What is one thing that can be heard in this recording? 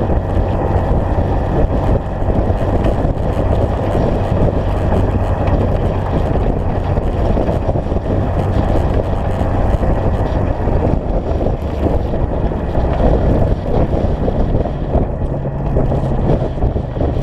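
Wind buffets loudly against a microphone.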